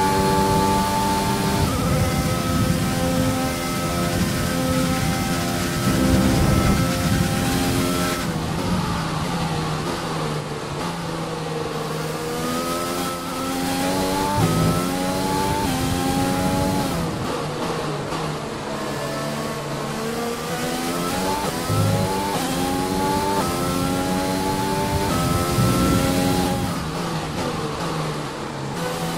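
A racing car engine screams at high revs, rising and dropping in pitch as it shifts gears.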